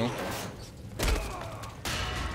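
A heavy body lands with a thud.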